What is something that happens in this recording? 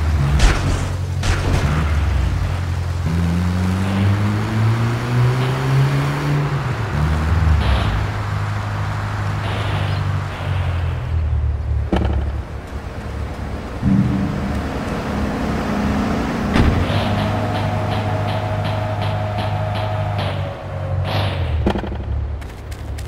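A van engine hums steadily and revs up now and then.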